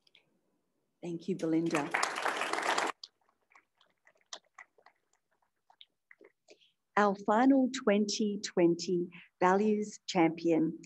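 A woman speaks into a microphone, heard through a loudspeaker in a large room.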